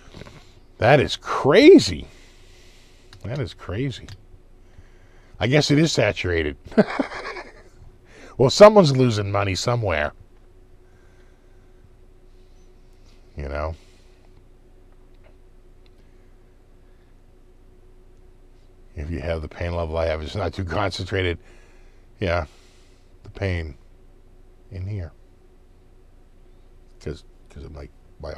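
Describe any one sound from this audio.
A middle-aged man talks calmly and cheerfully into a close microphone, with pauses.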